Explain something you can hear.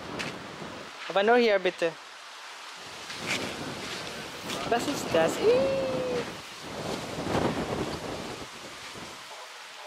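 A young girl babbles and chatters nearby.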